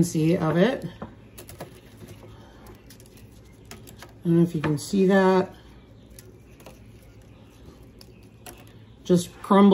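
Crisp dried pieces crackle and scrape on a metal tray.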